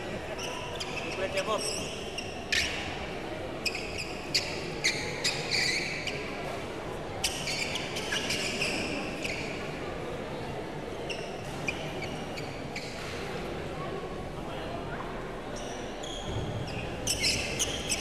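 A crowd murmurs in the background of an echoing hall.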